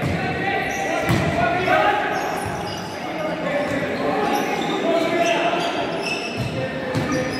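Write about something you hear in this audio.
Players' shoes squeak on the hard floor.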